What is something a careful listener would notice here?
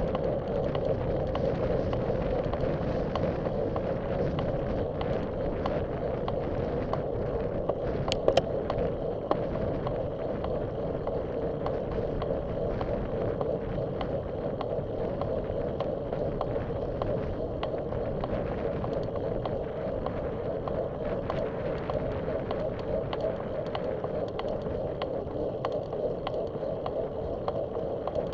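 Bicycle tyres hum and rattle over a paved path.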